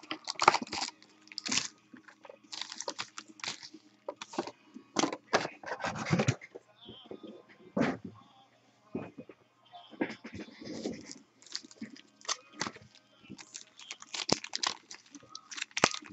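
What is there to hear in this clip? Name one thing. Foil card packs crinkle and rustle as hands handle them.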